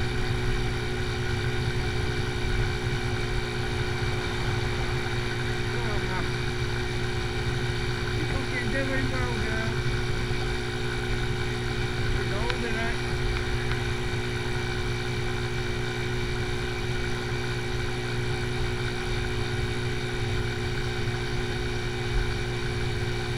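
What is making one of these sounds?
A motorcycle engine drones steadily.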